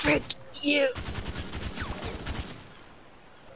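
A pistol fires a rapid burst of shots.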